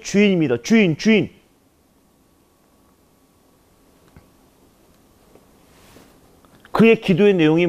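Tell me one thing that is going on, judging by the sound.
A man speaks forcefully into a microphone, echoing in a large hall, with long pauses.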